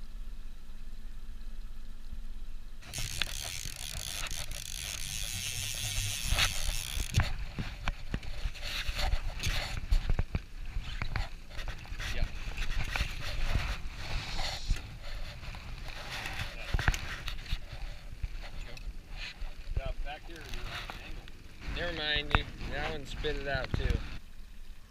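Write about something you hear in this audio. Wind rumbles across open water.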